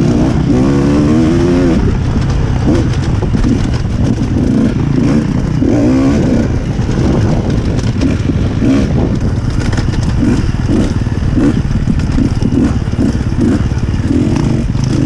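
A dirt bike engine revs and pops up close, rising and falling in pitch.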